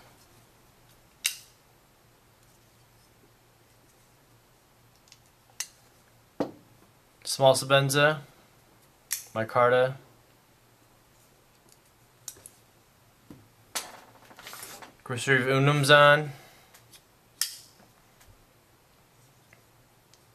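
A folding knife blade clicks open and shut.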